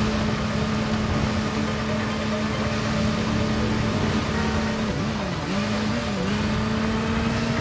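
A motorcycle engine hums steadily at speed, dipping in pitch while turning.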